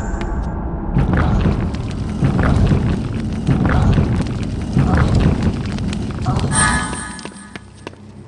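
Heavy stone blocks grind and rumble as they shift.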